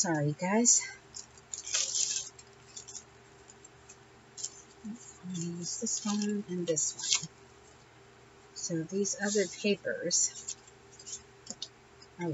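Paper rustles and crinkles up close.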